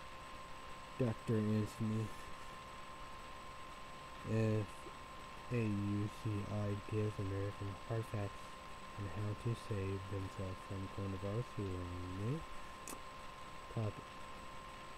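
A young man talks quietly and calmly, close to a microphone.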